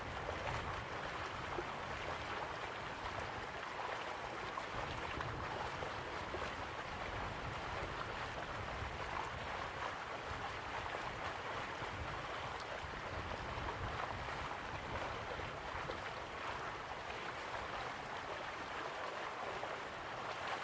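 Waterfalls rush steadily in the distance.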